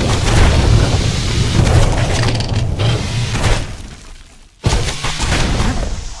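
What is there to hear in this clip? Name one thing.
Video game combat sounds clash and burst with quick hits.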